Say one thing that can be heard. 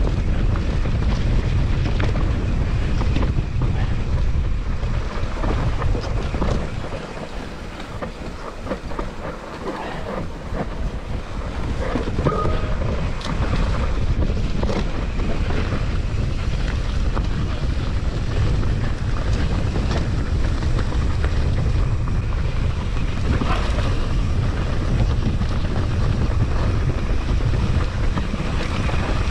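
Wind buffets loudly past the rider outdoors.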